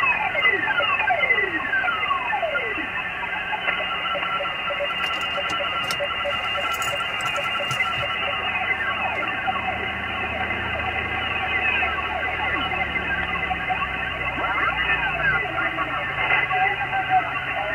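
Whistling tones glide up and down as a radio is tuned across stations.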